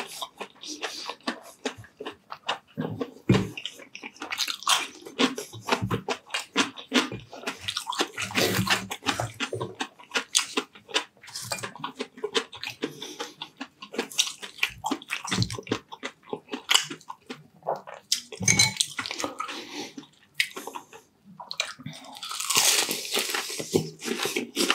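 A man chews and crunches loudly close to a microphone.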